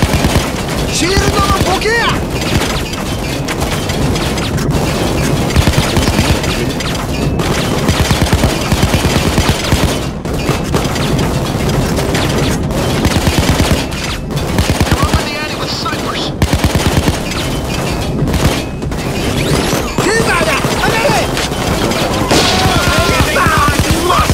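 An automatic rifle fires rapid bursts of gunshots.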